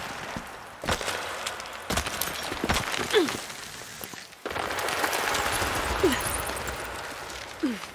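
A rope creaks and strains under a climber's weight.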